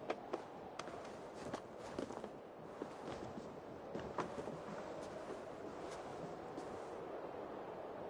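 Hands and boots knock and scrape on stone during a climb.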